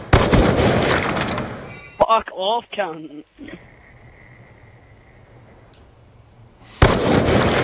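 A rifle fires a loud, booming shot.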